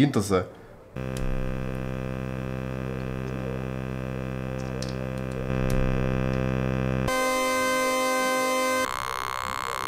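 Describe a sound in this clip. A synthesizer plays a steady buzzing drone that shifts in tone.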